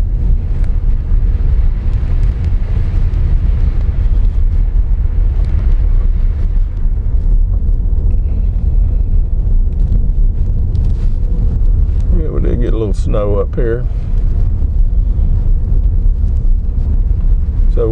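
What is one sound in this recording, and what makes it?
Tyres crunch and rumble over a snowy dirt road.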